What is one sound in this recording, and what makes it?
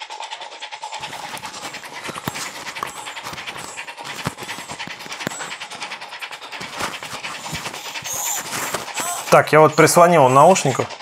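A small portable speaker plays sound close to a microphone.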